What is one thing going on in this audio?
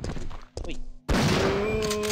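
A gun fires a shot in a video game.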